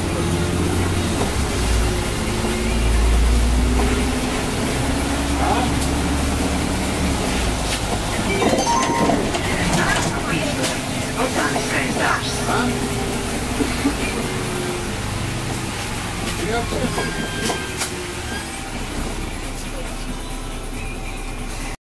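A bus engine hums low and steady from inside the bus.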